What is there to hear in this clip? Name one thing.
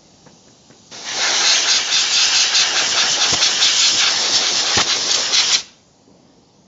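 An air gun blows a loud, steady hiss of compressed air.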